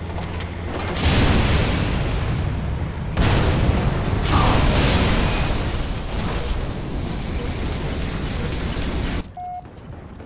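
Heavy gunfire blasts loudly in bursts.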